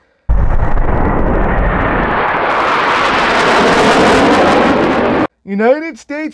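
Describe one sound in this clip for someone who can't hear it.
Jet planes roar overhead.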